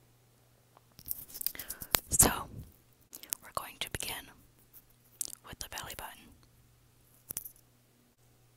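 An earphone cord microphone rustles and scrapes loudly as it is handled up close.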